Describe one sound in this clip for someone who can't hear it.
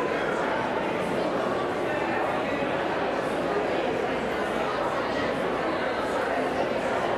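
A large crowd of men and women chatters in a big echoing hall.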